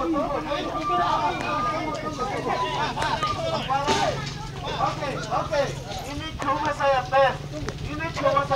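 A crowd of men talk and shout over one another outdoors, close by.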